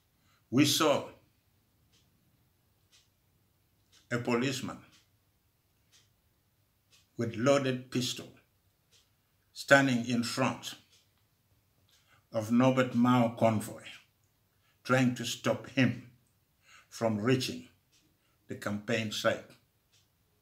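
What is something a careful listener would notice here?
An elderly man speaks slowly and calmly, with long pauses, close to a microphone as if on an online call.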